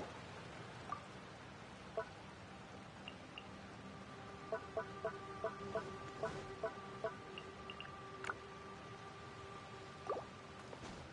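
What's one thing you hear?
Short game menu clicks and chimes tick in quick succession.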